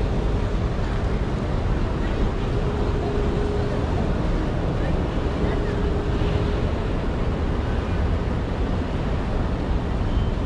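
Traffic rumbles steadily along a busy city street outdoors.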